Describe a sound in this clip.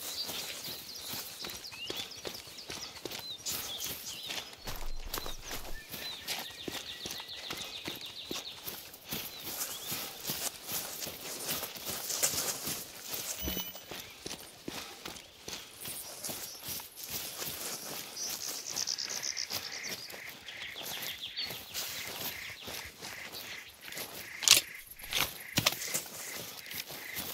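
Footsteps crunch and rustle through grass and brush.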